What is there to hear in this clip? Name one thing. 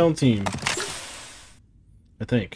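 A metal case snaps open.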